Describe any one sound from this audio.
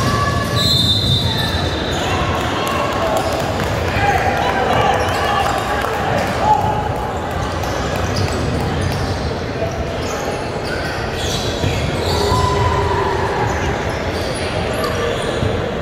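Sneakers squeak on a hard court floor in a large echoing gym.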